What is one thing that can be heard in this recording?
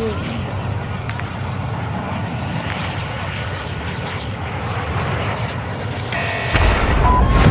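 Large propeller aircraft engines drone steadily.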